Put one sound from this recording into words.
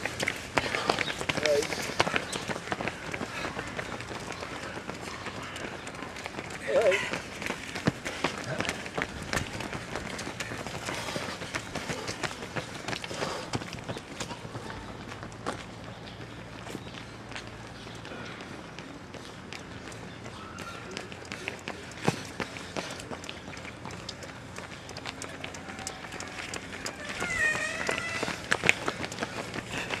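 Running footsteps slap on paving stones.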